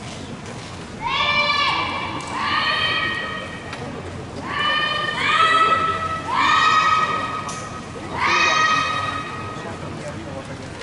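Young women shout sharp, drawn-out cries in a large echoing hall.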